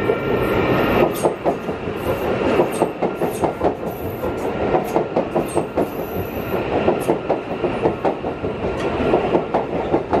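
Train wheels clatter rhythmically over rail joints.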